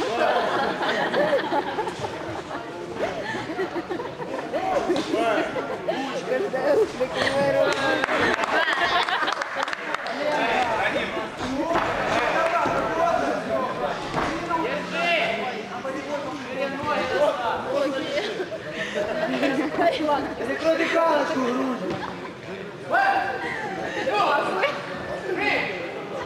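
A crowd of spectators shouts and cheers in an echoing hall.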